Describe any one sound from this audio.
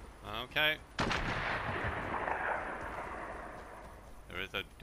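A gunshot rings out and echoes away.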